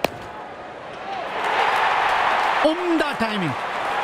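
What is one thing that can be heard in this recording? A large crowd cheers loudly in a stadium.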